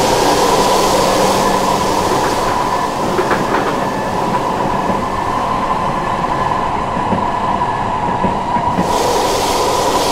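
A train car hums and rumbles steadily.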